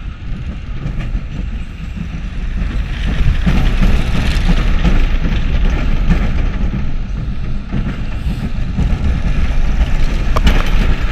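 A roller coaster car rattles and clatters along its track.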